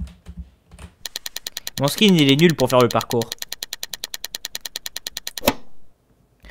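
Rapid, even clicks tick as a selection wheel spins.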